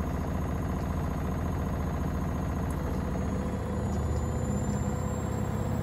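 A washing machine drum spins with a steady low hum that rises in pitch.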